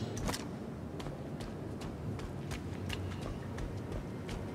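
Footsteps tread on soft ground at a steady pace.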